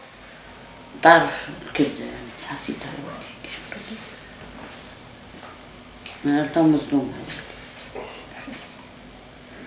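An older woman speaks slowly and quietly close by, in short phrases.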